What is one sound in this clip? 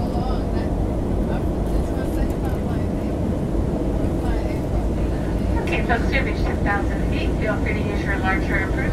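A jet engine roars steadily, heard from inside an airplane cabin.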